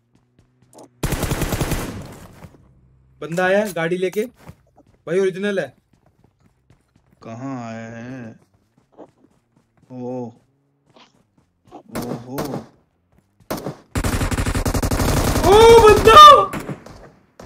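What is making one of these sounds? Gunfire bursts in rapid shots.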